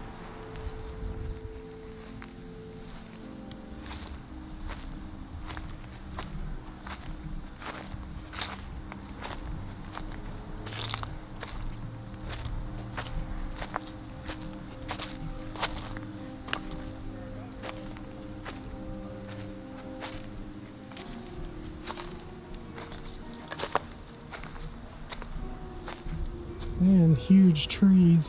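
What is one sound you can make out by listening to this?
Footsteps crunch and rustle through grass and dry leaves outdoors.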